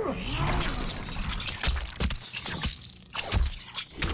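A heavy blow lands with a wet, squelching thud.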